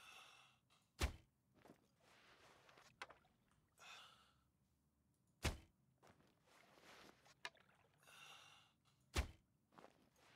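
A bowstring snaps sharply as an arrow is loosed.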